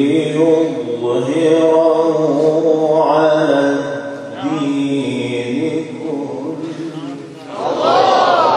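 A young man chants a long melodic recitation through a microphone.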